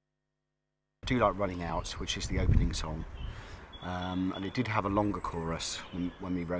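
A middle-aged man talks calmly and close to a microphone.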